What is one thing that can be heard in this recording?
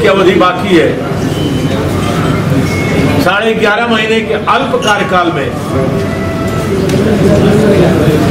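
A middle-aged man speaks steadily into microphones, close by, in a room with light echo.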